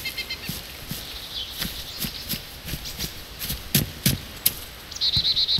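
Footsteps crunch through grass and onto a road.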